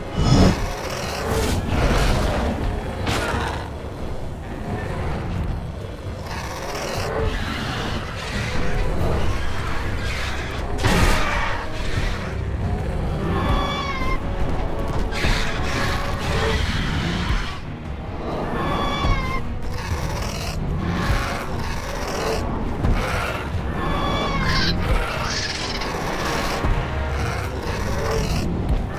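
Dinosaurs roar and screech.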